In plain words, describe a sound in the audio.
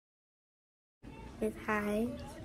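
Another young girl speaks brightly close to a microphone.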